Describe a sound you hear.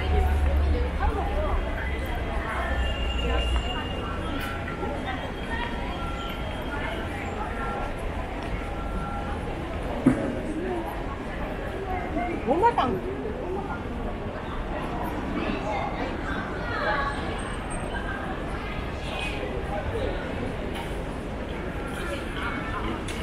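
A busy crowd of people chatters and murmurs outdoors.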